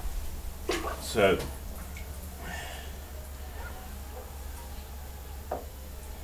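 Liquid glaze pours and splashes into a bucket.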